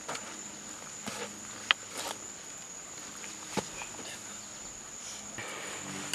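Footsteps crunch on dry leaves as a man runs off.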